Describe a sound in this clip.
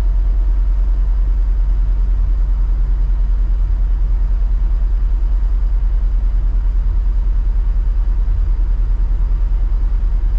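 A heavy diesel truck engine rumbles steadily at low speed.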